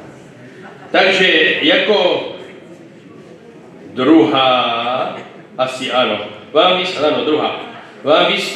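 An elderly man speaks with animation into a microphone, heard over loudspeakers in a large hall.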